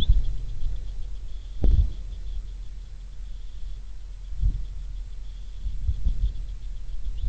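Wind gusts outdoors and buffets the microphone in low rumbles.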